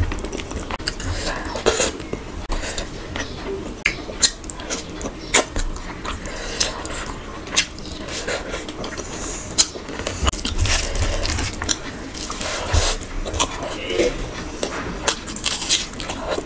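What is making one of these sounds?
A young woman chews and smacks food loudly and close to a microphone.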